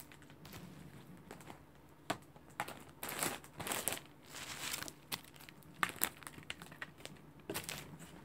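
A plastic case clatters and taps as it is handled.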